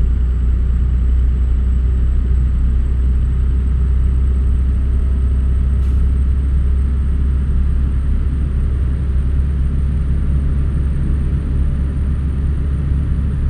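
A truck engine rumbles steadily while driving at speed.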